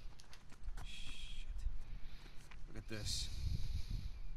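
A man speaks tensely in a low voice.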